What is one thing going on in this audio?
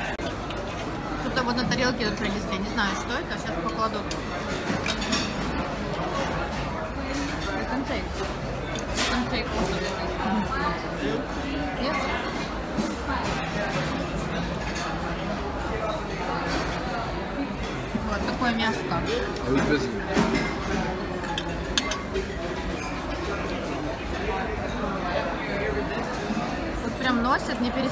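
A busy crowd of diners chatters all around in a noisy room.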